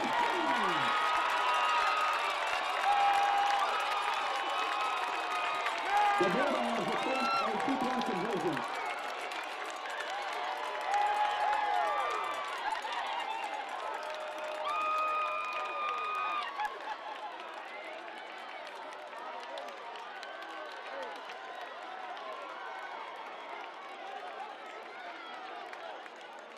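A crowd of young men and spectators shouts and cheers outdoors.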